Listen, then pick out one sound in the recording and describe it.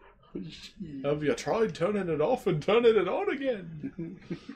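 A young man laughs loudly through a microphone.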